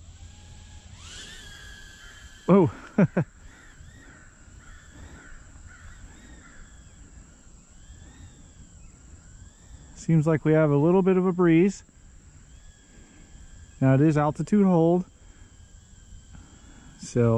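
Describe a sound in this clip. A small toy drone's motors whine and buzz, rising and dipping in pitch.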